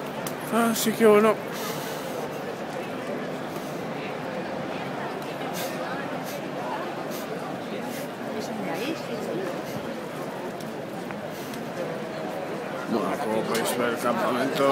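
A crowd murmurs outdoors in the background.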